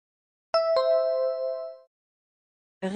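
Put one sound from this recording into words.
A bright two-note chime rings out and fades.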